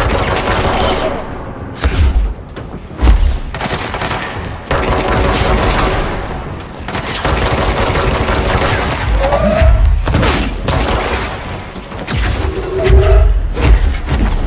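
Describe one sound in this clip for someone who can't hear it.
A gun fires in loud, booming bursts.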